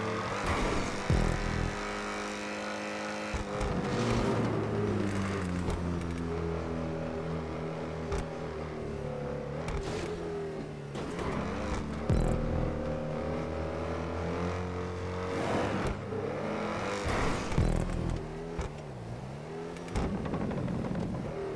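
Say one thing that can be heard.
A sports car engine roars steadily at high speed, its pitch shifting as it changes gear.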